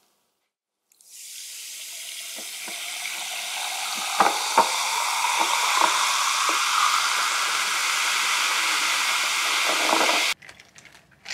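Sparkling water pours over ice into a glass and fizzes.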